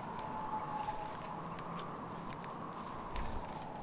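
Footsteps crunch on dry forest leaves.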